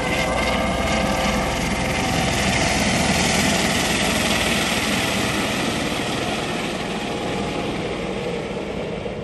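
A helicopter flies close by with a loud thumping rotor and whining engine, then slowly moves away and fades.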